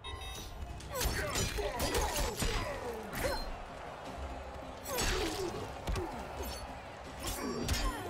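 Punches and blade strikes thud and clang in quick bursts.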